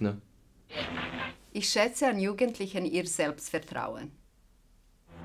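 A middle-aged woman speaks brightly and close up.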